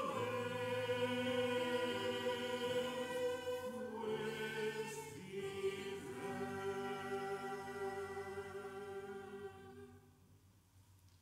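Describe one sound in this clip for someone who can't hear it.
A small choir of women sings together in a reverberant hall.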